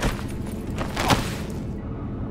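A body thuds onto a hard floor.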